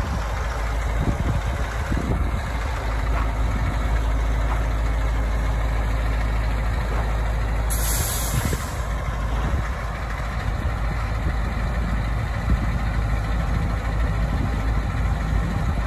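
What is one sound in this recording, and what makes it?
A large diesel engine rumbles steadily as a heavy vehicle drives slowly.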